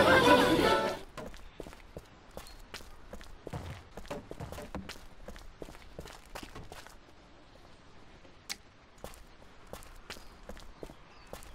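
Footsteps pad quickly over grass.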